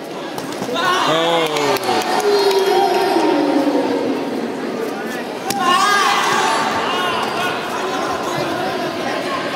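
Fighters' kicks thud against padded guards.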